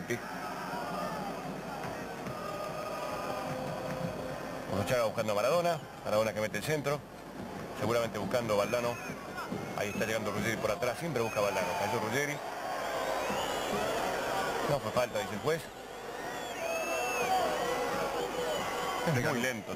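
A large stadium crowd murmurs and cheers.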